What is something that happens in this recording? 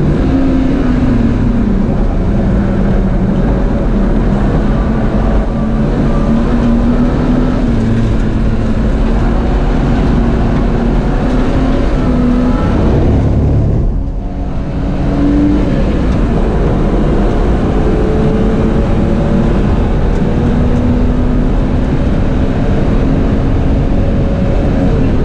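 A car engine roars loudly from inside the cabin, revving up and down as gears shift.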